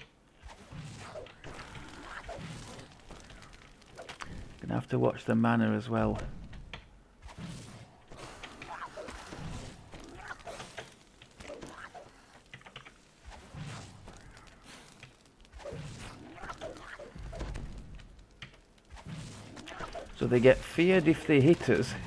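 Weapons clash and spells hit during a fantasy battle.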